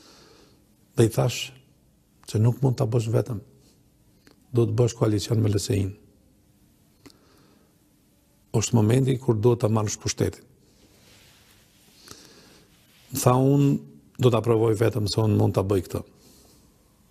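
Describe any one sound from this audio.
A middle-aged man speaks firmly into a close microphone, in short bursts with pauses.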